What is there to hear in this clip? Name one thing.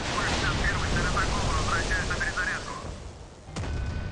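Aircraft cannons fire in rapid bursts.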